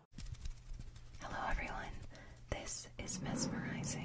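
A young woman whispers softly and close into a microphone.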